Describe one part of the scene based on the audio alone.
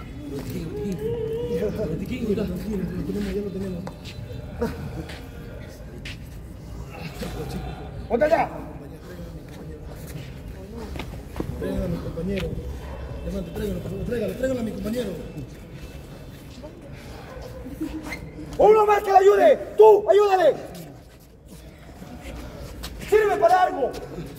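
Men talk in loud, tense voices nearby.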